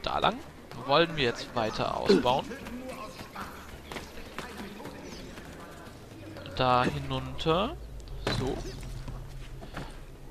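Footsteps patter quickly across roof tiles.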